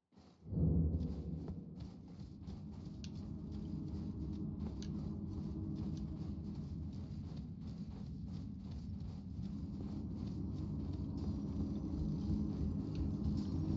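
Armoured footsteps crunch on gravel at a run.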